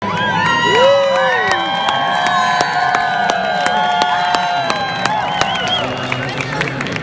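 A crowd claps hands along.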